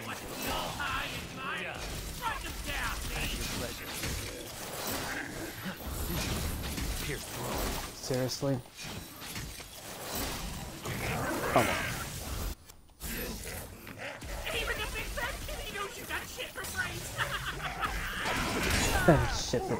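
Swords clash and slash with loud impacts in a fast fight.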